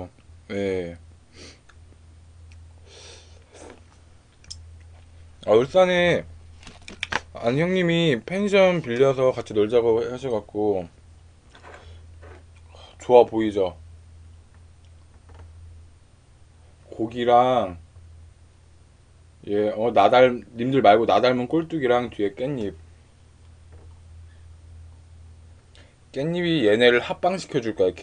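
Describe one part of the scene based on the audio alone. A young man chews food noisily close to a microphone.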